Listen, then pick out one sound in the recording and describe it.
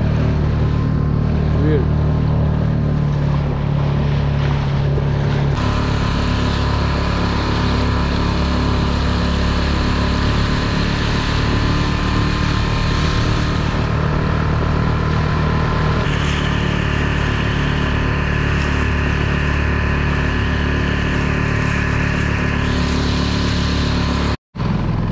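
Water rushes and splashes along a moving boat's hull.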